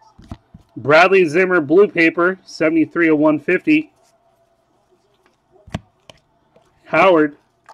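Trading cards rustle and flick between fingers.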